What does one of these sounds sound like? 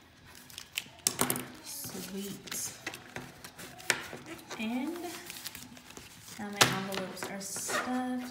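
Paper envelopes rustle and slide against each other.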